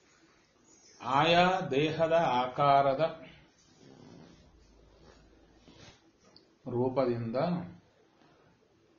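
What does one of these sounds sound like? A man speaks calmly and clearly, close by, in short phrases with pauses.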